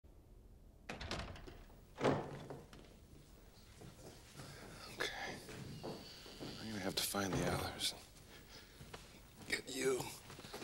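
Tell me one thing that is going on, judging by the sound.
Footsteps hurry across a hard floor.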